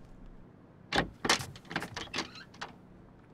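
A door handle clicks and a door swings open.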